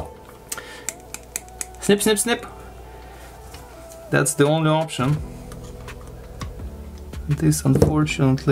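Plastic parts click and snap as they are pried apart.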